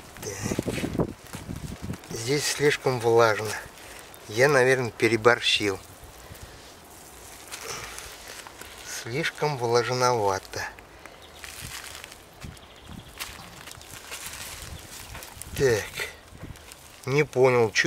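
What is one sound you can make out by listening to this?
Hands crumble and break up damp soil.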